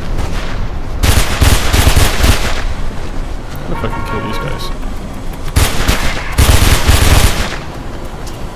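A pistol fires in rapid bursts of shots.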